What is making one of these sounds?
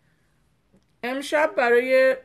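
A middle-aged woman speaks calmly, close to the microphone.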